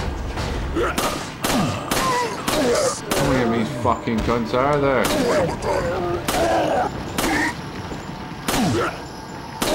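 Pistol shots ring out one after another.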